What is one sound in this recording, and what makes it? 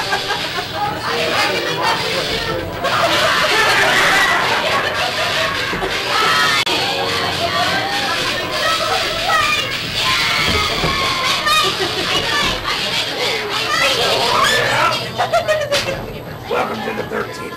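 Several young people talk together close by.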